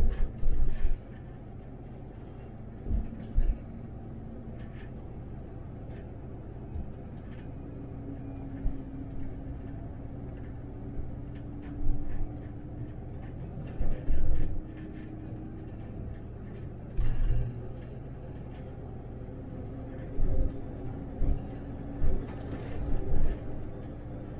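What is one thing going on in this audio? The cabin of an articulated city bus rattles and knocks over bumps in the road.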